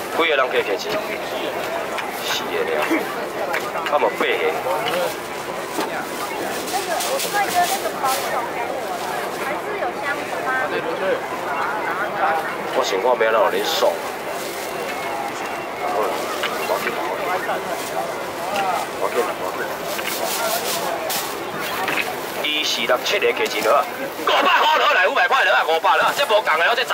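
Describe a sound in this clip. A man calls out loudly to the crowd.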